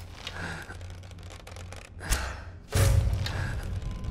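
A bowstring twangs as an arrow is loosed.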